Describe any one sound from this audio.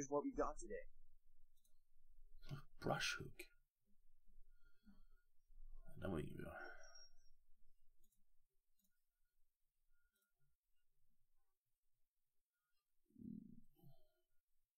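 A man talks calmly and close to a microphone, in short bursts.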